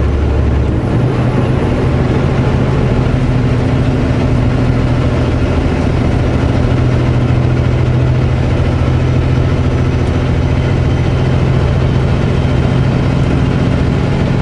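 Tyres roar on the highway.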